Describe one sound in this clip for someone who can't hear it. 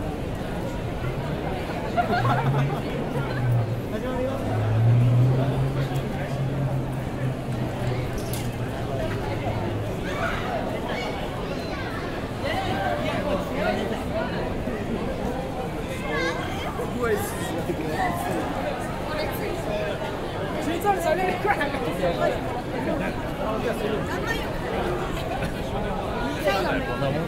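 A busy crowd murmurs and chatters all around outdoors.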